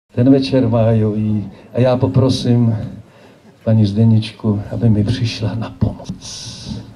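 A man announces loudly over a loudspeaker outdoors.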